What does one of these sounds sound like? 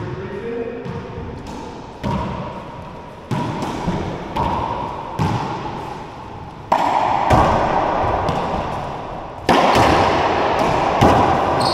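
A racquetball smacks sharply against the walls and echoes through an enclosed court.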